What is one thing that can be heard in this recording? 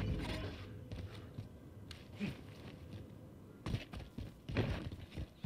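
A rifle clicks and rattles as it is handled.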